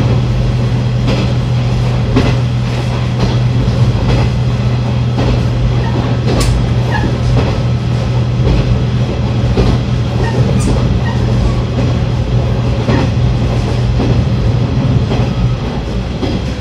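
A train's diesel engine drones steadily, then quiets.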